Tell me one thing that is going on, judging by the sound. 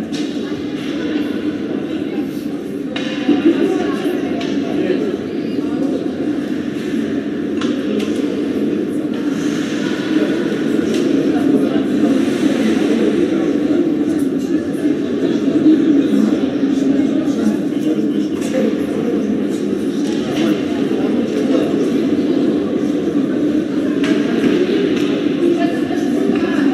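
Skates scrape and glide on ice.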